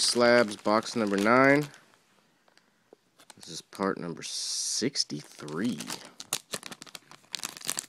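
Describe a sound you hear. Foil packets crinkle in hands.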